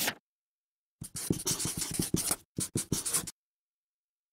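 A marker scratches and squeaks across paper.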